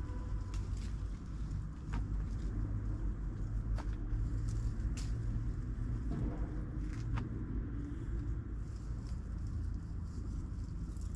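Tree leaves rustle.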